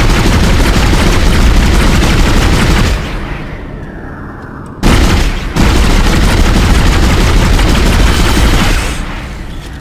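A weapon fires in loud roaring bursts.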